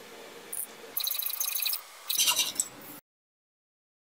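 A hacksaw rasps back and forth through a metal pipe.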